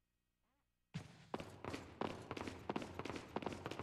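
Gunshots ring out in quick, loud bursts.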